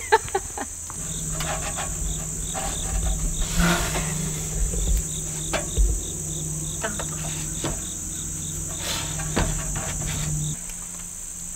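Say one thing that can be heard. Footsteps thud on a metal plank.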